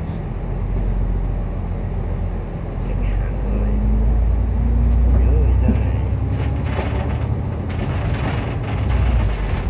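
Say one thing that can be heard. City traffic hums along the street.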